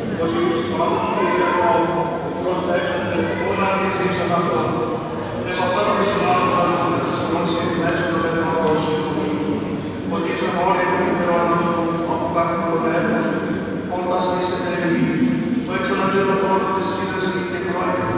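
A small choir of men and women sings a slow hymn together, echoing in a large resonant hall.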